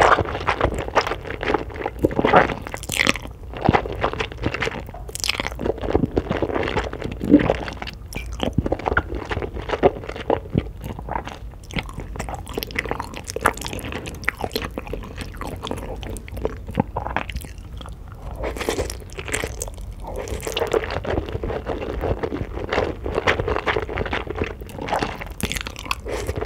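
A woman chews food wetly close to a microphone.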